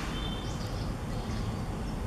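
A baby monkey squeaks softly up close.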